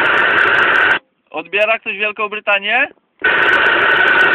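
Static from a radio cuts off abruptly, then returns.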